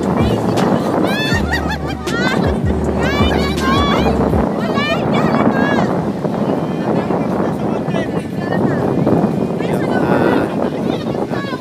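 A crowd of young people shouts and cheers close by.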